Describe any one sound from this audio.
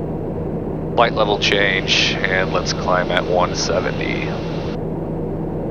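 A man speaks briefly through a radio headset.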